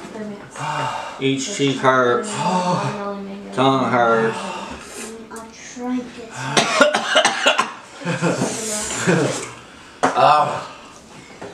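A second young man talks and groans, close by.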